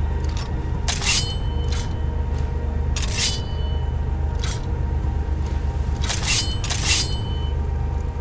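A metal blade rings as it is drawn from a sheath.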